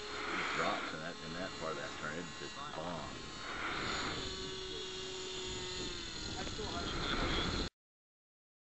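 A small model aircraft engine buzzes overhead.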